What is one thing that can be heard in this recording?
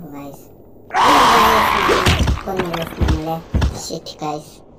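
A heavy blow lands with a loud, sudden thud.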